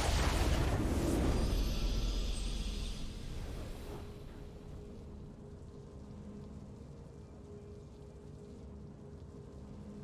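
A triumphant victory fanfare swells.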